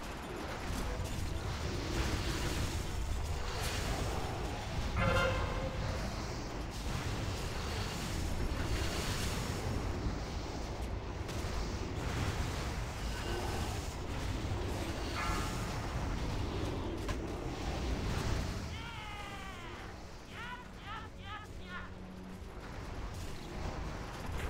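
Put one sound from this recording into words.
Magic spells crackle and boom in a noisy battle.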